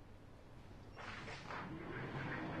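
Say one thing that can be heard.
Paper rustles as pages are handled.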